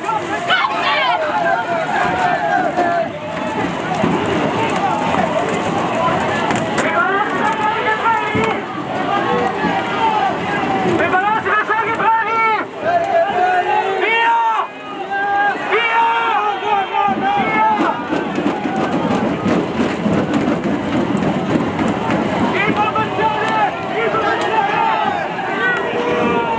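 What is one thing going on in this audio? A crowd of men shouts loudly nearby, outdoors.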